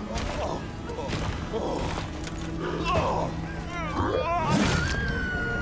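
A man talks with animation into a microphone.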